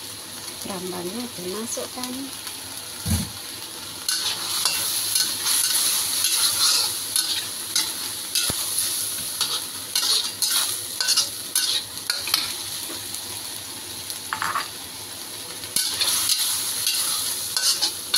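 A metal spatula scrapes and clatters against a wok.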